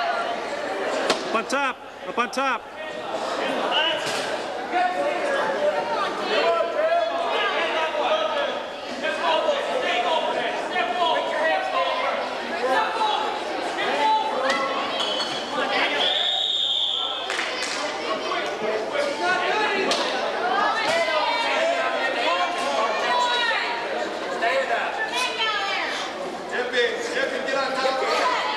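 A crowd of spectators shouts and cheers loudly in a large echoing hall.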